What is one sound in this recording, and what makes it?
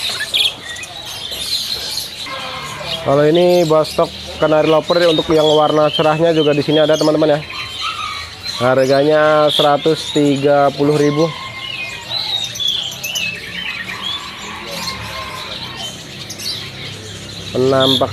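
Small birds chirp and twitter close by.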